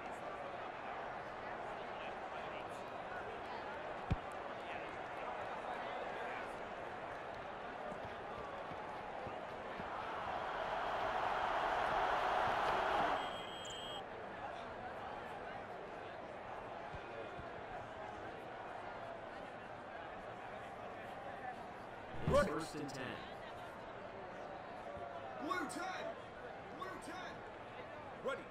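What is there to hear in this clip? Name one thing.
A stadium crowd roars steadily, swelling loudly during the kickoff run.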